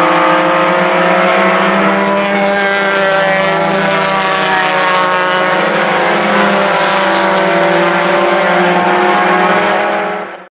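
Racing car engines roar and whine loudly as the cars speed past close by.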